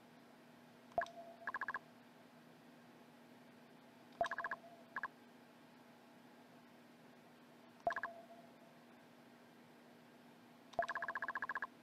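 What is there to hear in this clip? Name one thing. A soft click sounds before each burst of blips.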